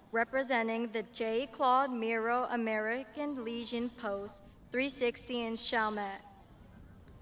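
A young woman speaks clearly through a microphone and loudspeakers outdoors.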